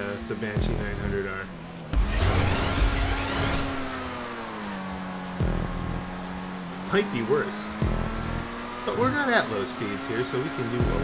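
A racing car engine roars and shifts pitch as the car speeds along.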